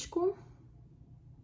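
A young woman speaks a brief word close by.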